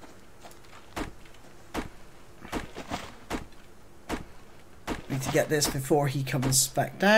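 An axe chops into a tree trunk with sharp, repeated thuds.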